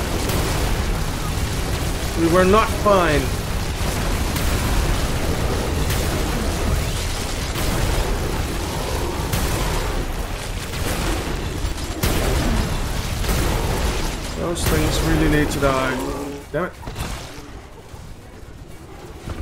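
Energy weapons zap and fire rapidly.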